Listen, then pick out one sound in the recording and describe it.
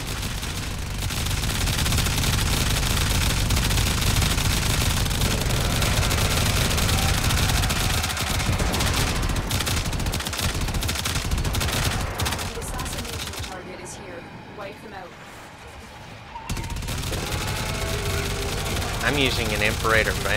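A flamethrower roars with a loud rush of fire.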